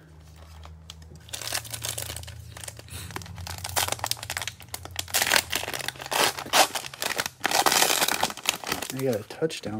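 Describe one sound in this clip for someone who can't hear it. A plastic wrapper crinkles and tears as hands pull it open.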